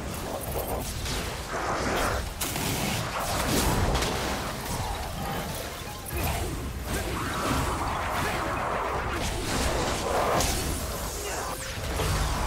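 Magical energy blasts whoosh and crackle.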